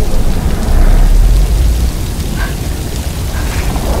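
A small fire crackles nearby.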